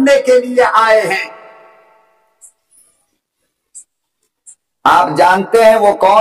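A man speaks forcefully into a microphone over a loudspeaker, his voice echoing.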